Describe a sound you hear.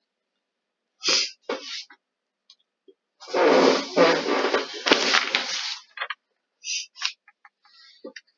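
A middle-aged woman speaks through an online call, in short bursts.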